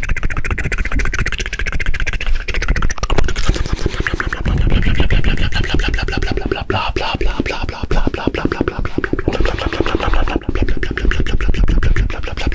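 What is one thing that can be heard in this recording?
A young man whispers softly, very close to a microphone.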